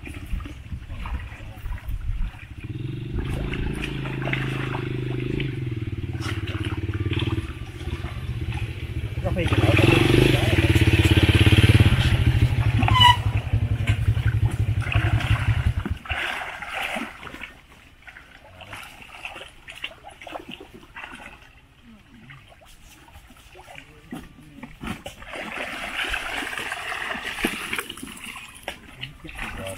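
Water splashes and sloshes as people wade.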